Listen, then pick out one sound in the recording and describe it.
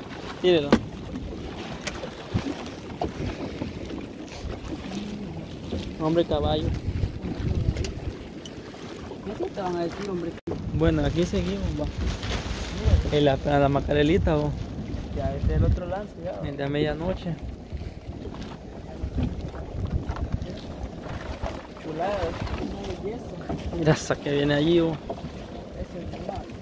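A fishing net rustles and scrapes as it is hauled in by hand.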